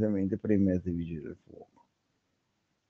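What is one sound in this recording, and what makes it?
A man speaks calmly over an online call, then falls silent.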